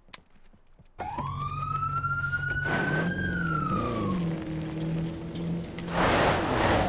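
A car engine starts and revs, rising in pitch as the car drives off.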